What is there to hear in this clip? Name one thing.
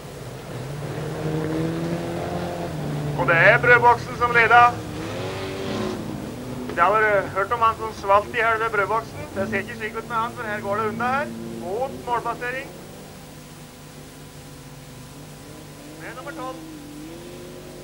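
A rally car engine revs and roars on a gravel track.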